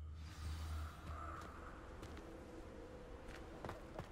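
Footsteps tread on stone and earth outdoors.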